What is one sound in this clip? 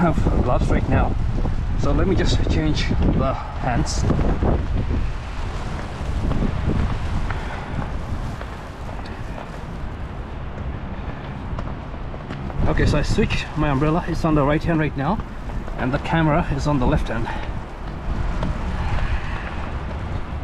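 Wind blusters against a microphone outdoors.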